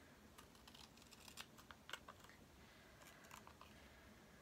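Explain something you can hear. Scissors snip through thin card in short crisp cuts.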